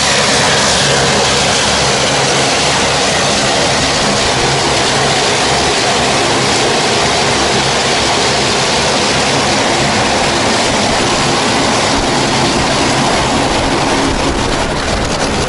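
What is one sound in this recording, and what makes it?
Strong wind roars steadily across the microphone outdoors.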